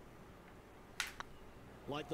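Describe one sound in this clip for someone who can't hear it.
A putter taps a golf ball with a short click.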